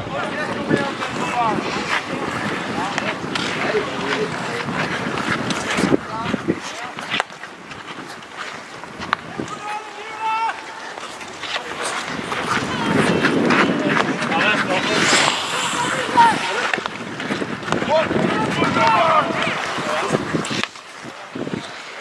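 Young men shout to each other in the distance, outdoors.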